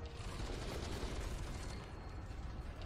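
Heavy machine guns fire in rapid, booming bursts.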